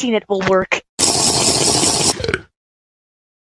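A drink slurps loudly through a straw.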